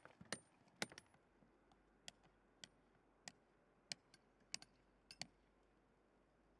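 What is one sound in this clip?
Distant hammers tap on stones.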